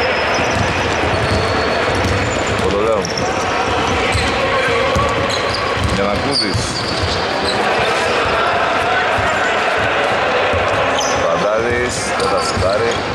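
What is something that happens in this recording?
Men call out to each other across an echoing hall.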